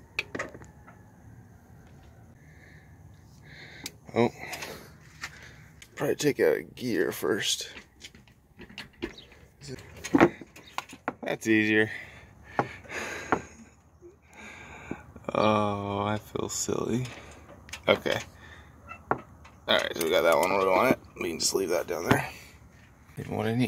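Metal and plastic parts click and knock under a hand.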